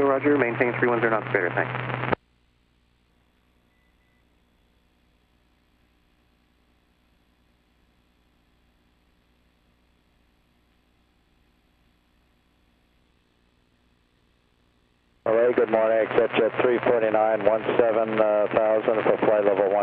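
A small plane's engine drones steadily.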